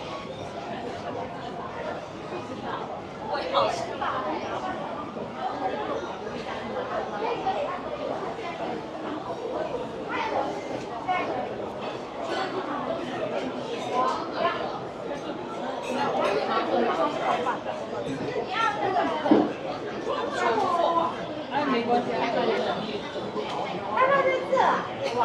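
A crowd murmurs and chatters all around in a large, echoing hall.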